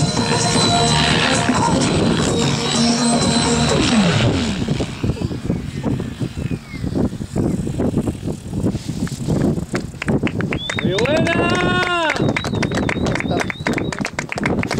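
A model helicopter's motor whines steadily.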